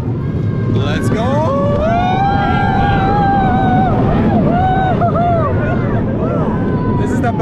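A man shouts and whoops excitedly close by.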